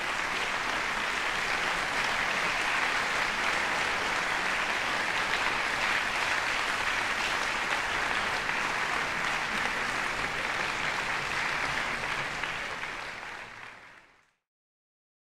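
An audience applauds loudly in a large hall and then fades out.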